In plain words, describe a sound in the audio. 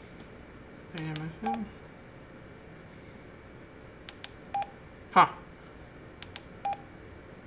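Buttons on a handheld radio microphone click as they are pressed.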